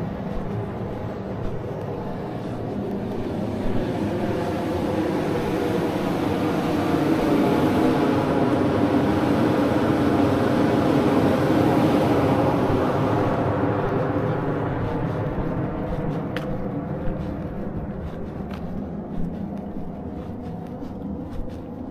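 Wheels rumble steadily over rough pavement outdoors, growing louder and then easing off.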